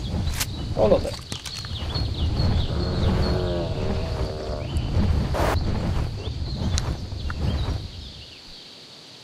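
Wind rushes past as a large winged creature flies.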